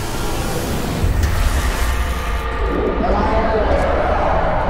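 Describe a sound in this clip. A deep rumbling boom swells and fades.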